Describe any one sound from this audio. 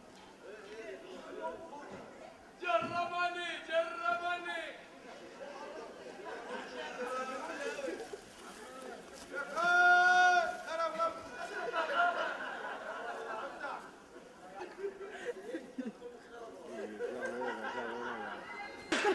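A group of men shout and cheer outdoors.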